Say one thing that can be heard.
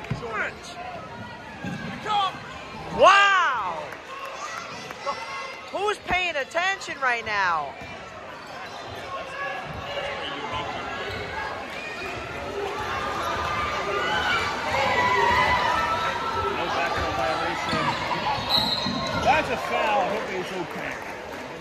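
A crowd of spectators chatters and cheers in an echoing gym.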